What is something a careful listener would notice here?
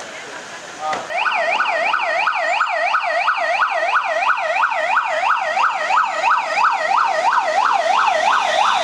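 A police siren wails rapidly up and down, close by.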